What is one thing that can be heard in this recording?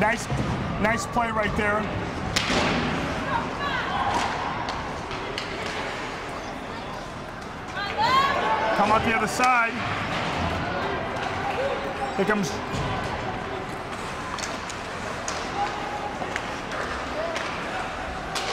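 A crowd of spectators cheers and shouts in an echoing rink.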